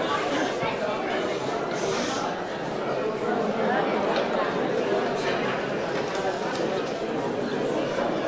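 A crowd of men and women chatters in an echoing hall.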